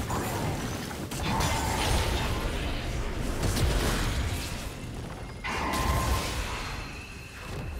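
Magic spells whoosh and crackle during a fast fight.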